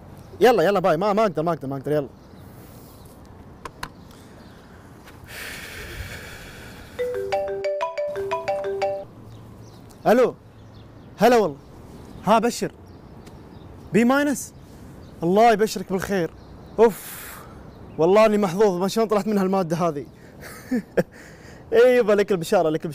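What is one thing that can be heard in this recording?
A young man talks on a phone close by, calmly.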